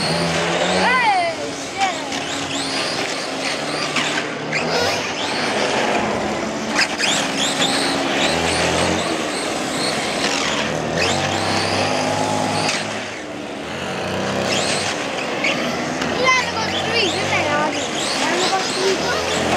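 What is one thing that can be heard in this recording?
A motor scooter's engine hums nearby.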